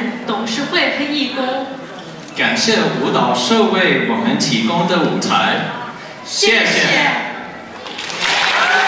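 A young man speaks through a microphone over loudspeakers in a large hall.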